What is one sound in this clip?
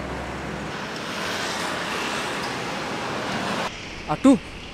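Motorcycle engines hum and traffic passes on a road.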